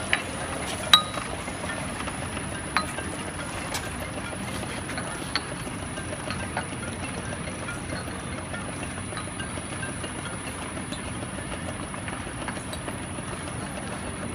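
Glass bottles clink against each other as hands set them down.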